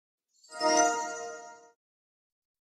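A magical chime sparkles and rings out briefly.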